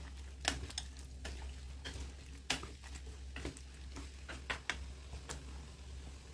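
A wooden spatula scrapes and knocks against a pan while stirring vegetables.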